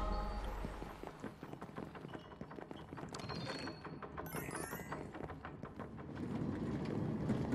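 Game sound effects clatter and chime during a fight.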